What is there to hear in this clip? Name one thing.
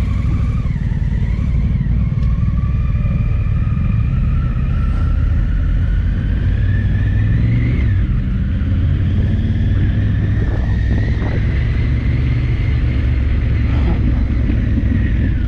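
A motorcycle engine rumbles steadily up close, rising and falling in pitch.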